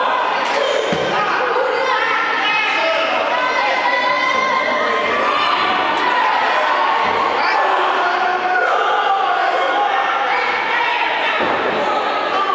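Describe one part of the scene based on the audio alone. A body thuds onto a wrestling ring's mat.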